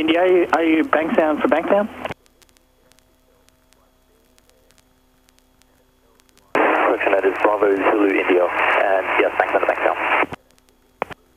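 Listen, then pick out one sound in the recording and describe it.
A young man speaks calmly through a headset intercom, close and slightly muffled.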